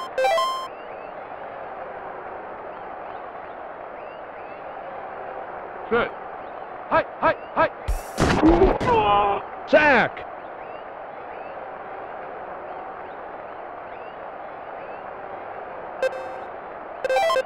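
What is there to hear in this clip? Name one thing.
Short electronic menu beeps chirp.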